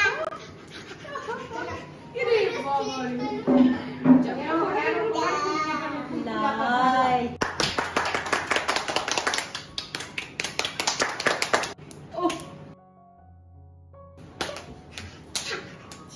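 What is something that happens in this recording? A baby squeals and laughs loudly.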